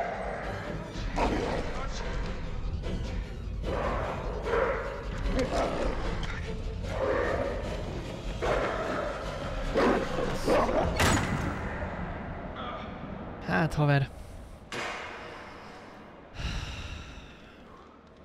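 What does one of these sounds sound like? A young man talks and laughs with animation into a close microphone.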